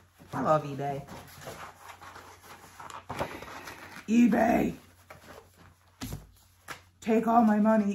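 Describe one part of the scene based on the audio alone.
Paper rustles as a folder is handled.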